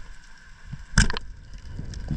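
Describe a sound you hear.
A speargun fires underwater with a sharp snap.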